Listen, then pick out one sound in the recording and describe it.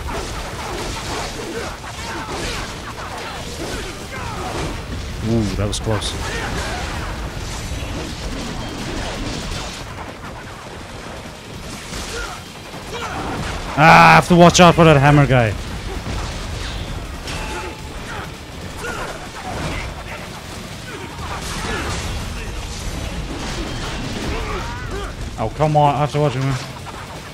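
A man talks close to a microphone.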